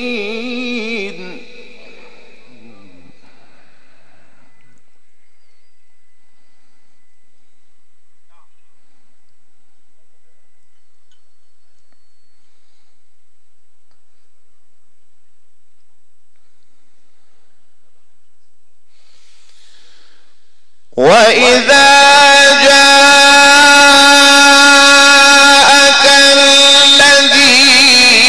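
A man chants in a long, drawn-out melodic voice through a loud microphone.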